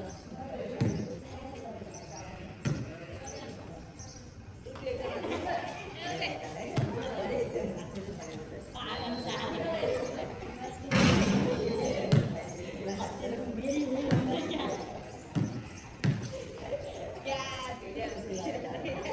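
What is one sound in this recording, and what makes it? A group of young people talk and call out at a distance outdoors.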